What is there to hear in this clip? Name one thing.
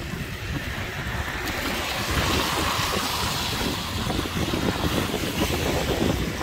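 A car's tyres hiss past on a wet road.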